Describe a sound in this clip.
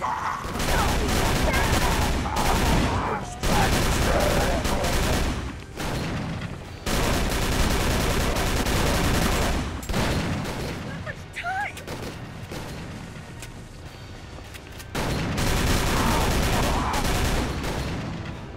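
A submachine gun fires rapid bursts, echoing in a large hall.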